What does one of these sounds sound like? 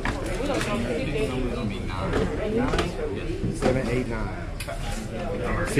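Several men talk over one another close by, in a lively chatter.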